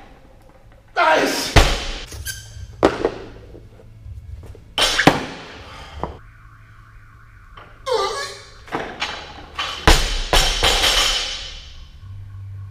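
Heavy weight plates slam onto a hard floor and bounce in a large echoing hall.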